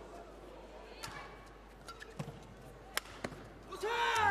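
A racket strikes a shuttlecock with sharp pops.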